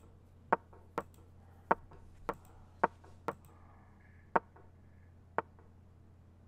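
Chess move sounds click sharply in quick succession.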